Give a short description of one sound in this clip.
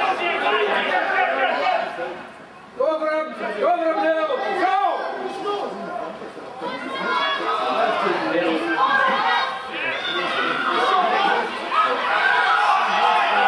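Rugby players shout to each other across an open pitch.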